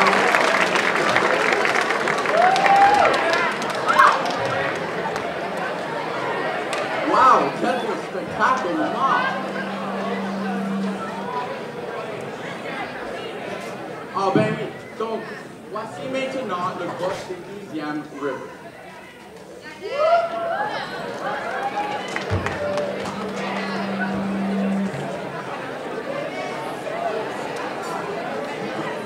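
Young men and women chat and call out in a large echoing hall.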